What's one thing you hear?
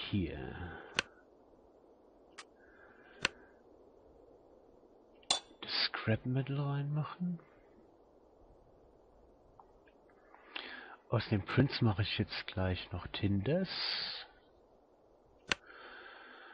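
Short interface clicks tick now and then.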